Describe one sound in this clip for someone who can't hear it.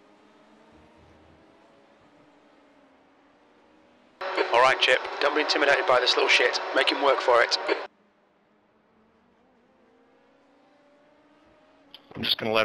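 Race car engines drone faintly in the background.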